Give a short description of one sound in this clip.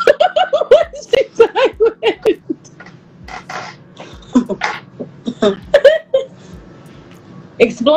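Two young women laugh together.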